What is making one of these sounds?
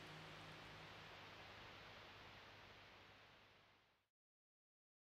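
A river flows with a steady rushing of water that fades away.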